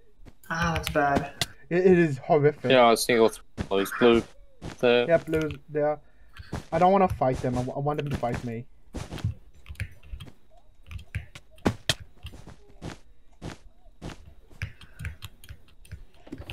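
Blocks are placed one after another with quick soft clicks.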